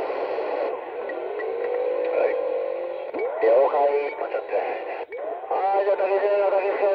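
Warbling, whistling tones come and go through a radio loudspeaker.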